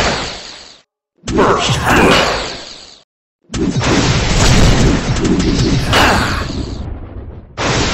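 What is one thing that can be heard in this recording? Magic blasts whoosh and boom.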